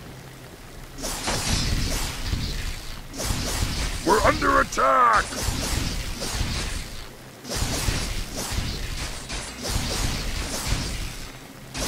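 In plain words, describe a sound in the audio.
Swords and axes clash in a fierce battle.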